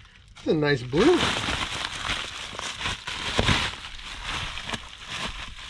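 Bubble wrap rustles and crinkles loudly.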